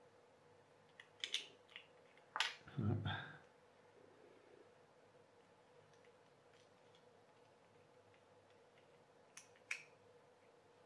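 Small plastic toy parts click as they are handled.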